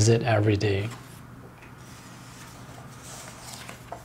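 A book's page is turned with a soft rustle of paper.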